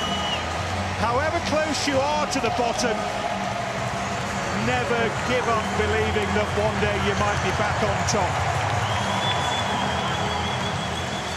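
Men shout and cheer joyfully close by.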